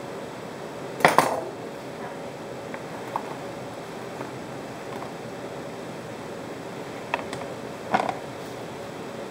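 Watermelon pieces slide off a board and drop into a plastic container.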